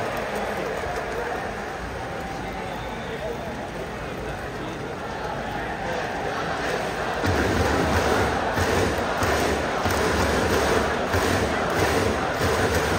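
A large stadium crowd cheers and chants steadily, growing louder.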